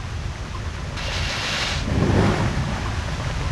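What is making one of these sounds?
A heavy landing thuds with a rushing whoosh.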